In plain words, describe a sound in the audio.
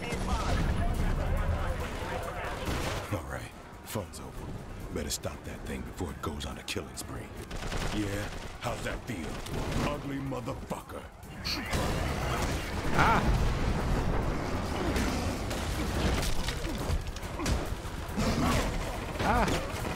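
Gunfire and impacts crackle in a video game.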